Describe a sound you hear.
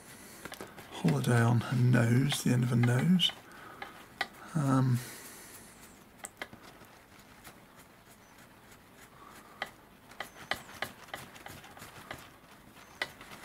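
Fingers handle a wire close by with small clicks and rustles.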